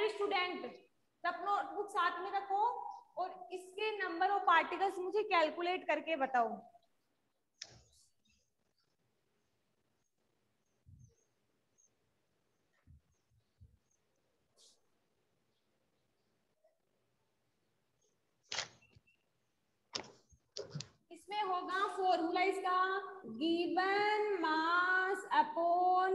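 A young woman speaks calmly into a clip-on microphone.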